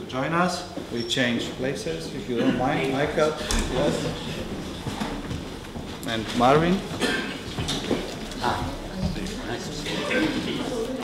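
A man speaks into a microphone with animation, echoing slightly in a room.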